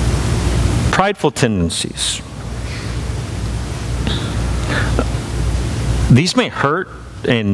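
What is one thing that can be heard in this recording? A man speaks slowly and thoughtfully through a microphone in a large room.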